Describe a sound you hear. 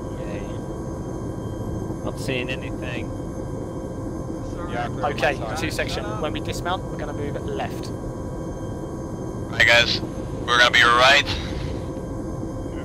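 An aircraft engine drones steadily throughout.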